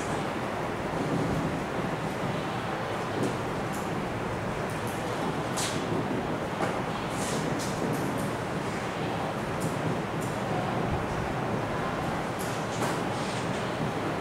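A marker squeaks faintly as it writes on a whiteboard.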